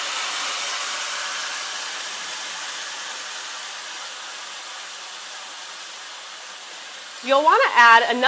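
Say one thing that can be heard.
Meat sizzles in a hot pot, the hiss slowly fading.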